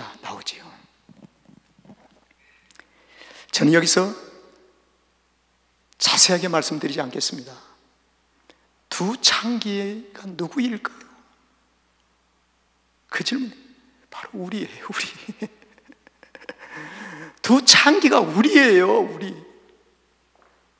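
An elderly man speaks with feeling into a microphone, in bursts with pauses, in a room with some echo.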